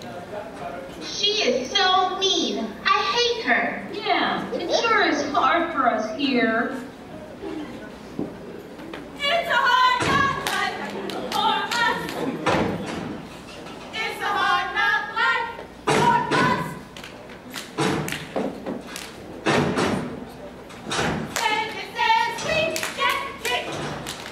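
A group of young women chant in unison in a large echoing hall.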